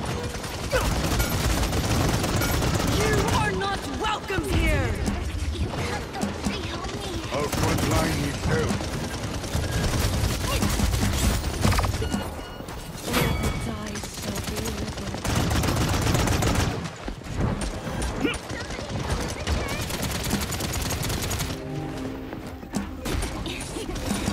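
Energy weapon blasts fire in rapid bursts.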